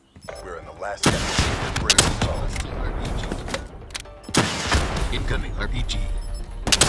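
Gunfire bursts loudly in rapid shots.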